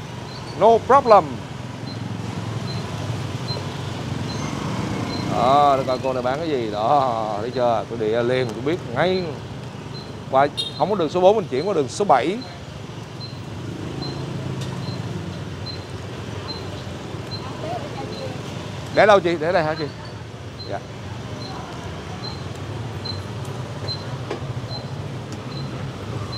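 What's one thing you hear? A motor scooter engine hums while riding along a street.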